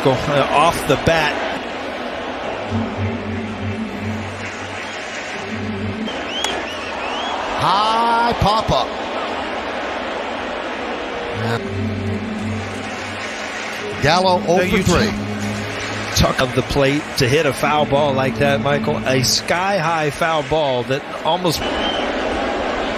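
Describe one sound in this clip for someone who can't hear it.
A large crowd murmurs and cheers in an open stadium.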